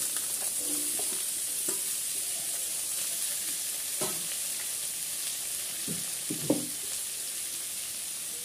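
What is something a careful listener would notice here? Vegetables sizzle as they fry in oil in a wok.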